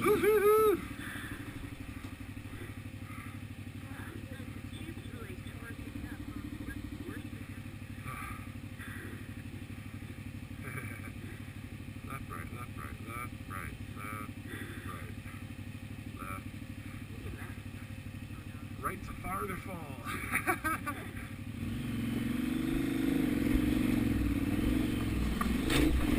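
A motorcycle engine idles and putters at low speed.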